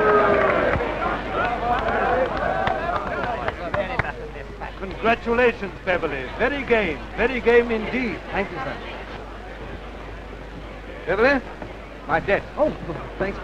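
Several men talk over one another.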